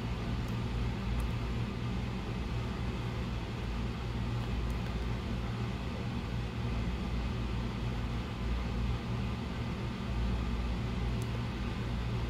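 Metal tweezers tap and click faintly against a circuit board.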